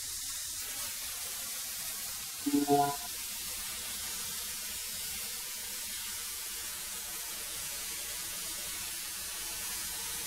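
A thickness planer roars steadily as it runs.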